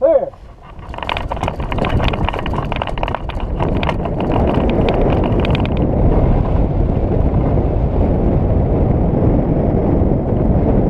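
Wind rushes loudly past a hang glider as it launches and flies.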